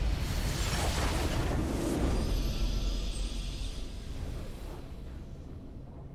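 A triumphant victory fanfare swells and then fades.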